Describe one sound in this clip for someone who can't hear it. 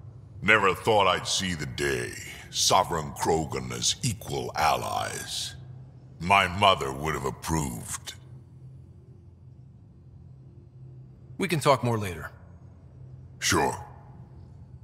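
A creature with a deep, gravelly voice speaks slowly and close by.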